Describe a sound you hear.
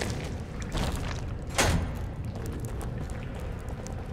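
Water splashes as a man wades through it.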